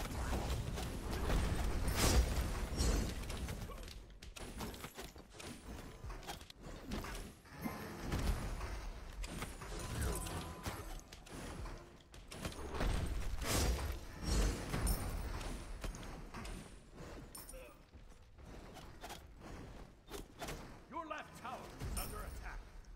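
Game sound effects of blasts and impacts ring out.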